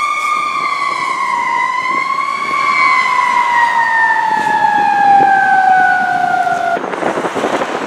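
A fire truck's siren wails steadily and slowly drops in pitch as the truck drives away.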